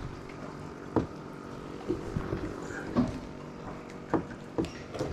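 A fishing rod knocks lightly against a boat.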